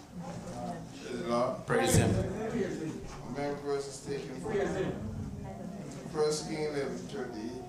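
A man speaks steadily into a microphone, heard through loudspeakers in an echoing room.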